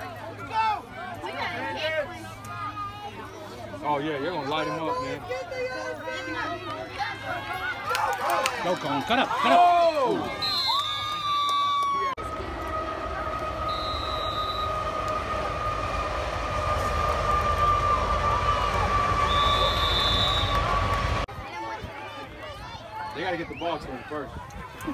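Children and adults shout and cheer outdoors.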